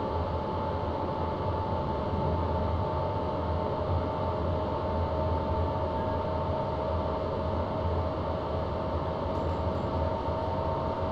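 A train rumbles steadily along the rails with a constant electric hum.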